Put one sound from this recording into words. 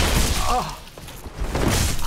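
A sword clangs against a shield.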